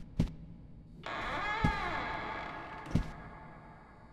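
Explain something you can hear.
A door creaks open slowly.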